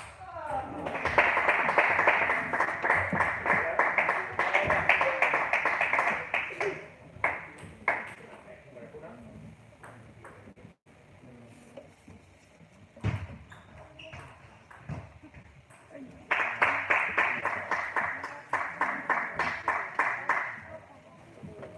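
A small crowd applauds in an echoing hall.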